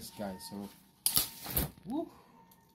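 An umbrella snaps open with a rustle of fabric.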